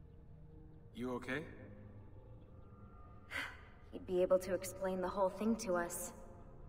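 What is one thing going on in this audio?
A young man speaks close into a microphone.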